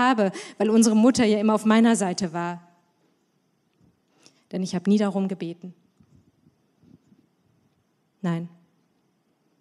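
A young woman reads out calmly into a microphone, with pauses.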